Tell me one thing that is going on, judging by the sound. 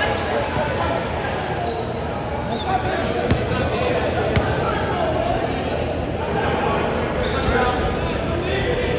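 Voices of young men echo through a large gym.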